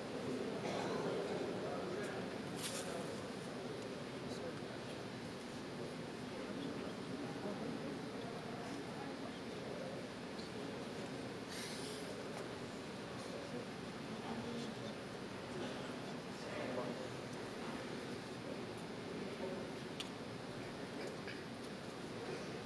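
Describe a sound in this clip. A man recites steadily into a microphone, heard through loudspeakers in a large echoing hall.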